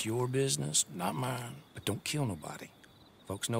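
A man replies in a low, gruff voice, close by.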